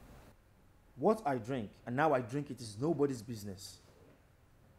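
A man speaks firmly, close by.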